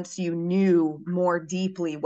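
A young woman talks over an online call.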